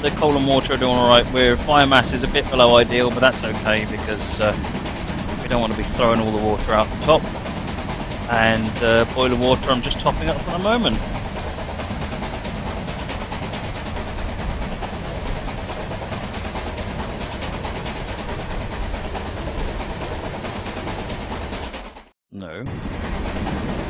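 A steam locomotive chugs steadily as it climbs.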